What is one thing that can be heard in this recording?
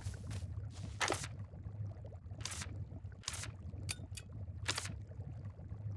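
Short, soft whooshing game menu sounds play as items are picked.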